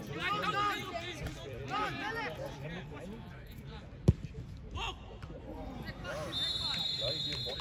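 Football players shout across an open pitch outdoors.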